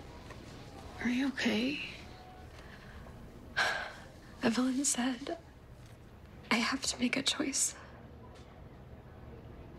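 A second young woman answers softly, close by.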